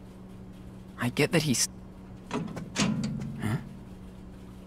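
A metal locker door rattles and creaks open.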